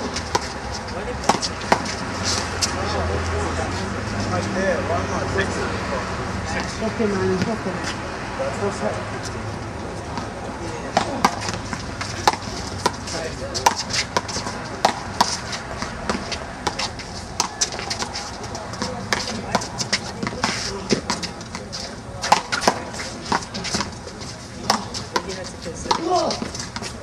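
A rubber ball smacks sharply against a wall again and again, with a slight outdoor echo.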